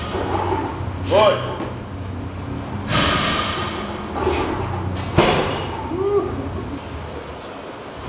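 A man grunts and breathes hard with effort.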